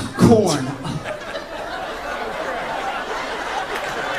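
An audience laughs and murmurs.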